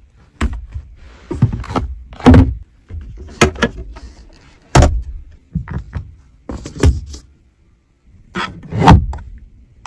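Plastic panels and a fold-down tray click and knock as they are opened and closed.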